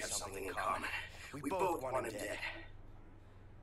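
A man speaks tensely in a low voice, close by.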